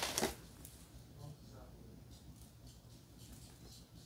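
Plastic wrapping crinkles in a woman's hand.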